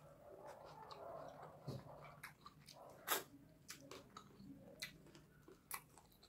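A man chews food noisily, close to a microphone.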